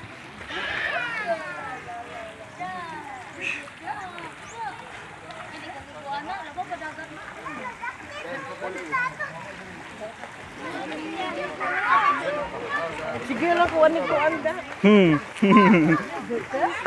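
Several people chatter outdoors nearby.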